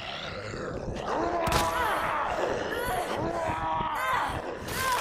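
A zombie groans and snarls up close.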